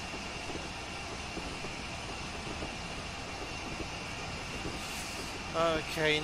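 A steam locomotive rumbles and chugs steadily along the track.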